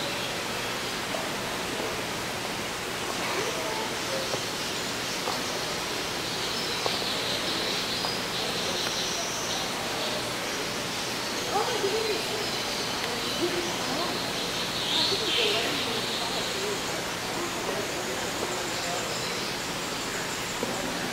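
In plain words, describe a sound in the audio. A cockatoo preens its feathers with soft rustling.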